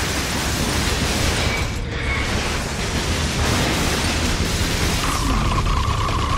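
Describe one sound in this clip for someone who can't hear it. Loud game explosions crackle and roar.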